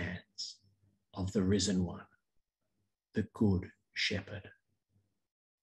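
A middle-aged man speaks calmly into a microphone, heard through an online call.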